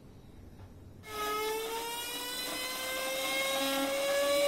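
A small electric motor whirs with a high whine that slowly rises in pitch.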